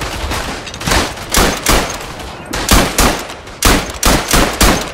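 A rifle fires several loud shots in quick succession.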